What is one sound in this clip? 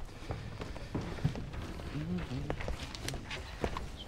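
Footsteps knock on a wooden stage floor.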